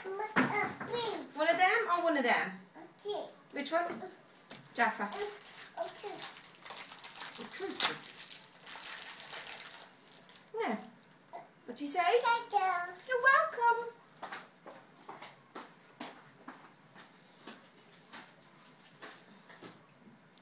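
A little girl babbles and talks in a small high voice.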